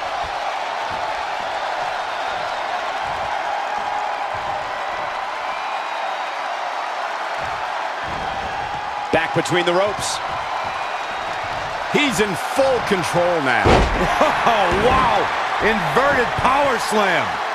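A large crowd roars and cheers steadily in an arena.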